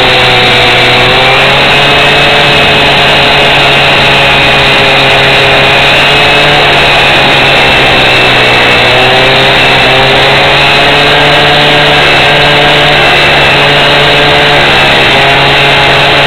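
A petrol rail saw screams loudly as it cuts through a steel rail.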